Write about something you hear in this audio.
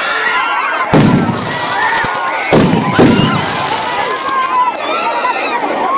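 Fireworks crackle and hiss.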